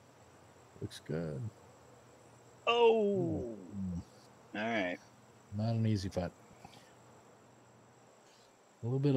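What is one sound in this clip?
A middle-aged man talks casually into a headset microphone in short bursts.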